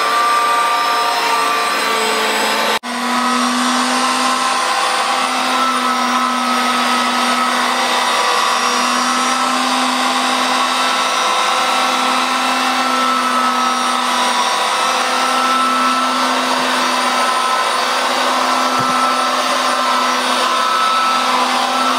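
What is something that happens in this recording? A carpet cleaner whirs steadily as it rolls over carpet.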